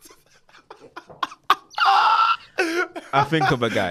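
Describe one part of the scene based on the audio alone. Two young men laugh loudly and heartily close to microphones.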